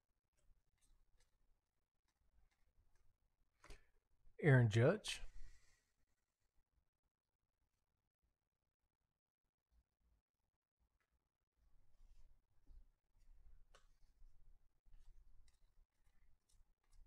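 Trading cards slide and flick softly against each other.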